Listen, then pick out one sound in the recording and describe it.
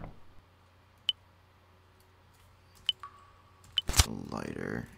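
Short electronic menu blips sound a few times.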